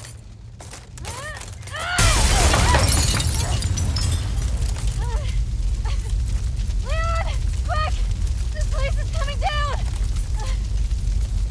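A young woman calls out urgently.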